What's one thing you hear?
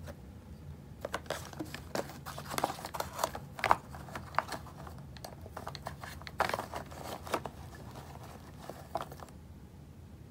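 Crayons clatter and rattle as a hand rummages through a box.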